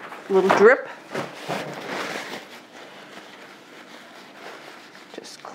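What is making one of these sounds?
A paper towel wipes against the rims of metal cake pans.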